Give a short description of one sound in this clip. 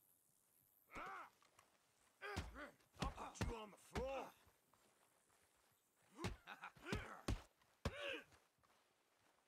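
Fists land heavy punches.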